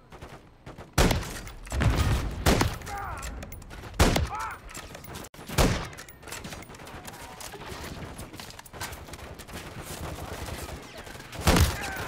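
A rifle fires loud single shots that echo.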